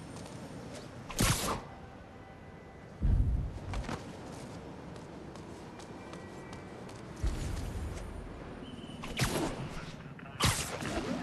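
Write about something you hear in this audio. Air rushes in short whooshes as a figure swings between rooftops.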